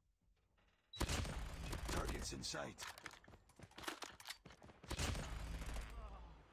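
Rapid gunfire rattles loudly in a game.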